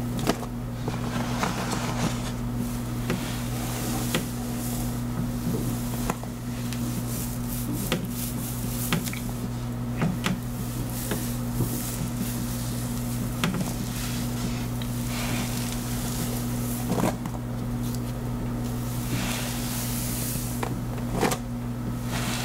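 Fingers rub and squelch through wet, soapy hair.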